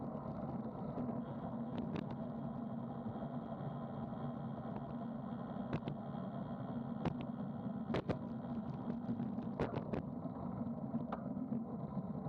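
Bicycle tyres hum steadily on smooth pavement.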